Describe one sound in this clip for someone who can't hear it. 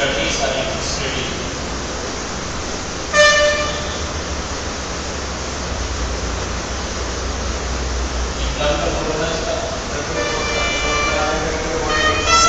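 A man speaks steadily in a lecturing tone, close by.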